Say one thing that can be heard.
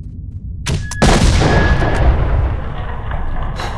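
An explosion booms close by and rumbles away.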